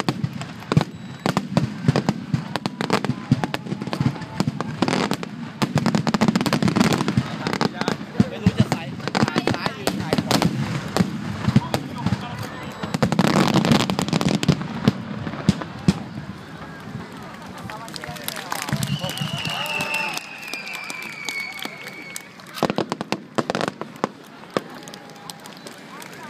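Fireworks bang and crackle loudly overhead in rapid bursts.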